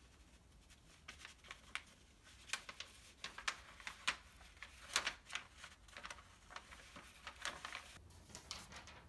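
A sheet of stiff paper crinkles and rustles as a cat paws it.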